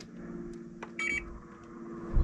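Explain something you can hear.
An air conditioner beeps once.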